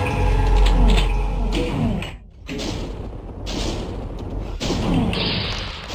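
Crackling energy bolts fire in quick succession.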